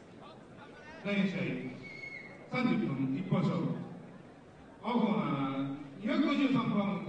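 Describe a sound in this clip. A man announces through a microphone over loudspeakers in a large hall.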